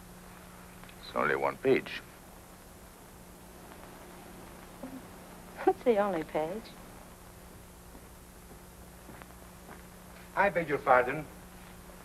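A man speaks softly and calmly, close by.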